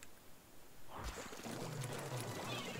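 Paint splatters with wet squelching bursts.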